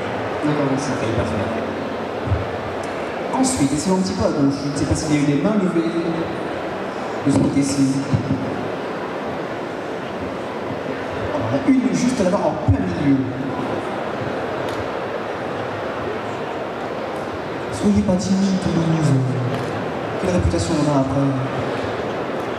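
A young man speaks calmly into a microphone, with pauses, over a loudspeaker in a large hall.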